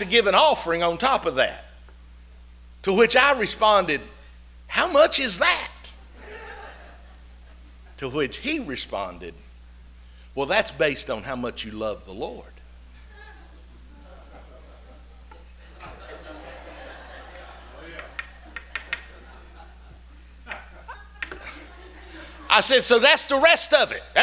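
A middle-aged man preaches with animation through a microphone in an echoing hall, with long pauses.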